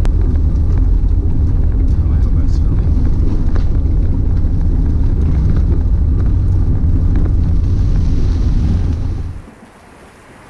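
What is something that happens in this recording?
Raindrops tap and patter close to the microphone.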